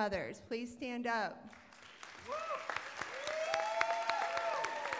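An audience claps.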